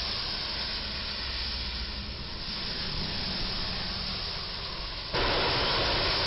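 A truck engine rumbles as it drives closer.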